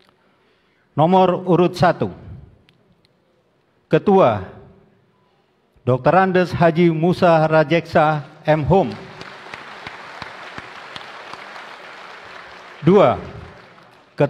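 A man speaks loudly into a microphone, heard through loudspeakers in a large echoing hall.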